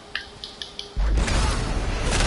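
A heavy weapon swings and strikes with a loud whooshing crash.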